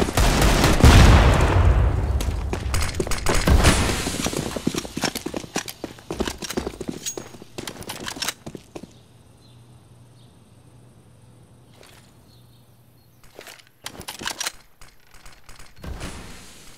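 Rapid gunshots crack in loud bursts.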